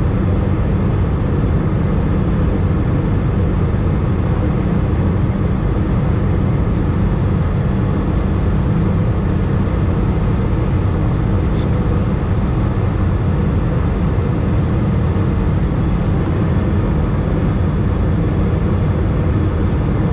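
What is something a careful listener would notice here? A jet engine roars steadily inside an airliner cabin in flight.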